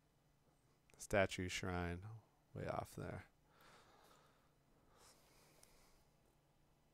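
A young man speaks briefly and casually into a close microphone.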